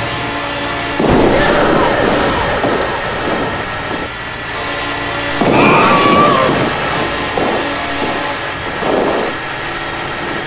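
Heavy vehicles crash and splash into water.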